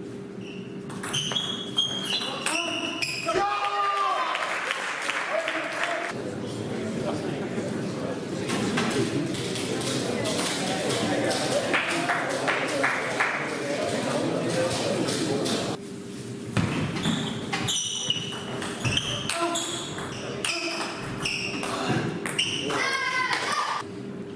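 Sports shoes squeak on the floor.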